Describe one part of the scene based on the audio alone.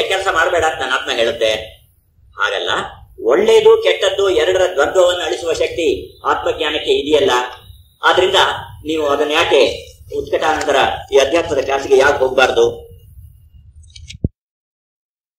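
An elderly man speaks with animation into a microphone, heard through a loudspeaker.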